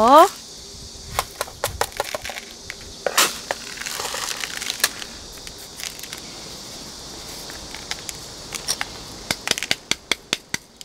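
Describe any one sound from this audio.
Small pebbles and soil crunch and rustle as a potted plant is handled.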